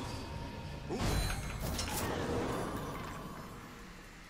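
A loud magical whoosh bursts and fades.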